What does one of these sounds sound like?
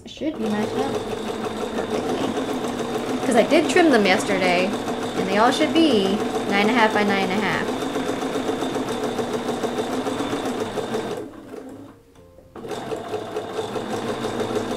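A sewing machine hums steadily.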